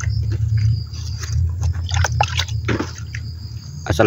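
Water trickles from a bucket onto soil.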